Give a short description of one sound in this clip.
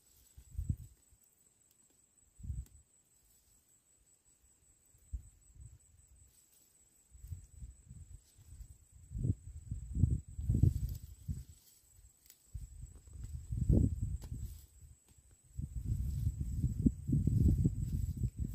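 Leaves rustle as hands pull at low plants.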